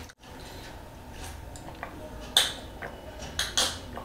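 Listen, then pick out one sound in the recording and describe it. A man sips water from a glass.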